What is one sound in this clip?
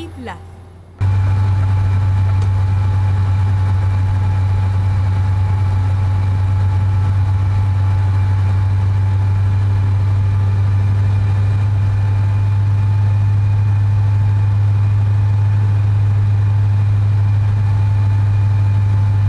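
A truck engine hums steadily while driving on a highway.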